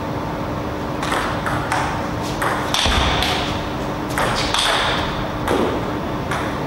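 A table tennis ball clicks sharply on paddles and the table in a quick rally.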